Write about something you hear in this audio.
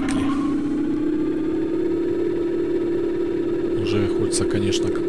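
A glowing magical weapon hums steadily.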